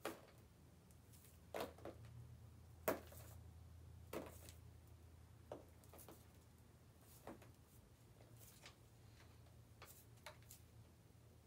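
Wet paint splatters onto a board in sharp slaps.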